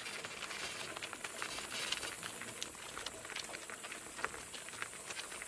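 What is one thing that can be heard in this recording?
Cart wheels crunch and rattle over gravel.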